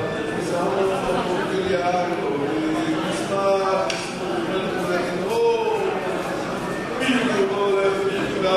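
A group of men chant together in a reverberant hall.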